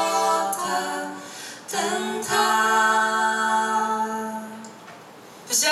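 Young women sing together into microphones.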